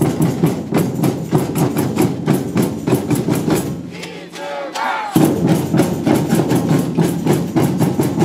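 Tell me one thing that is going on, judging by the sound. A samba drum band beats loud, fast rhythms outdoors.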